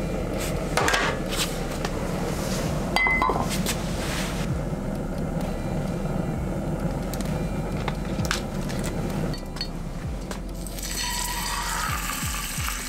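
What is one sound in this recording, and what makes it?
A gas burner roars steadily.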